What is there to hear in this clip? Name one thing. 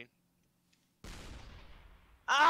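A game weapon fires with a loud whoosh.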